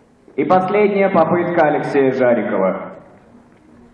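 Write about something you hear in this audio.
A man speaks in a large hall.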